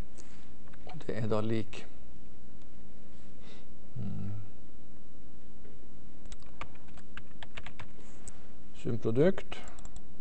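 A man speaks in short, calm bursts.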